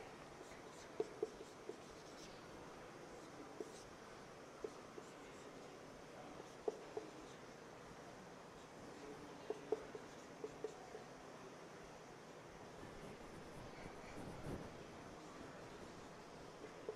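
A marker squeaks and taps faintly on a whiteboard.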